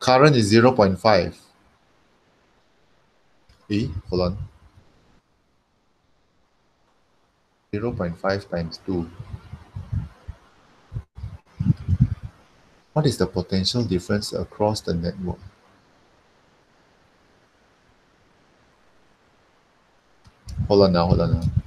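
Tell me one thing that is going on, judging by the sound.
A man explains calmly through a microphone, heard as if over an online call, in short bursts with pauses.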